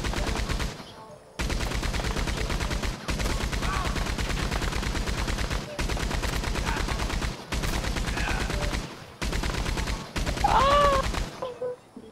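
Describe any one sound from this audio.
A machine gun fires rapid bursts, loud and close.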